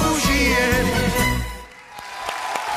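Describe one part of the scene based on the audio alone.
A man sings loudly into a microphone with music.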